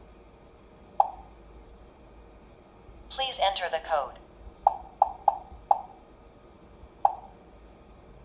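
A touch panel beeps as keys are pressed.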